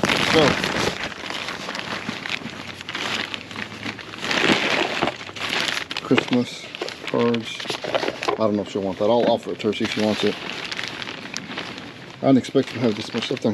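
A plastic rubbish bag crinkles and rustles as a hand rummages through it.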